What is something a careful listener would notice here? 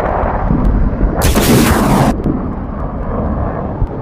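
Decoy flares hiss as they are fired.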